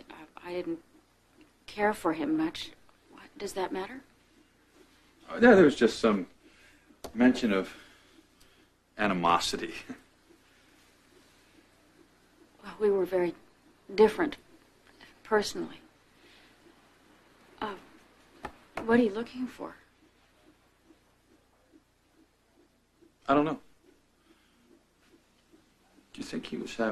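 A woman speaks calmly and seriously nearby.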